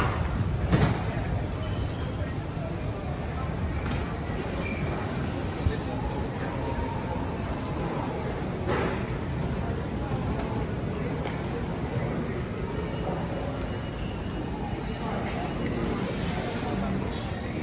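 Suitcase wheels roll over a hard floor.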